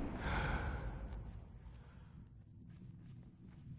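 Footsteps rustle softly through grass.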